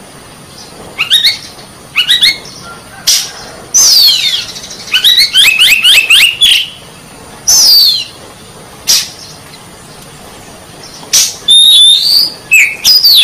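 A songbird sings loud, varied whistles and trills close by.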